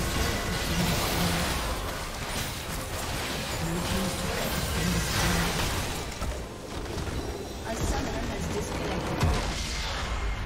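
Game spell effects crackle and blast in a fast fight.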